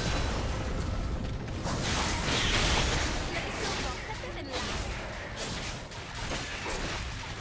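Game sound effects of spells and attacks crackle and burst.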